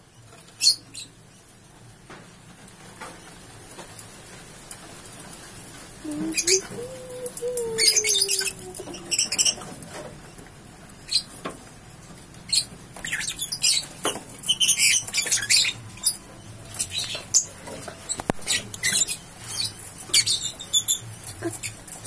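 Small parrots chirp in sharp, high bursts close by.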